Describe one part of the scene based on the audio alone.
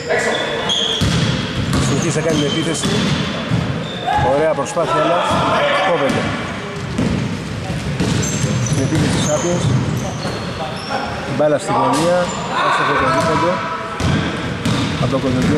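Men shout and call out to each other across an echoing hall.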